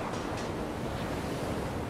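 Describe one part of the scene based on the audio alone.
Water rushes below.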